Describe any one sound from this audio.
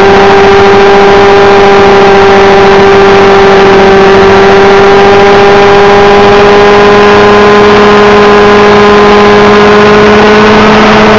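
Rotor blades whir and buzz rapidly overhead.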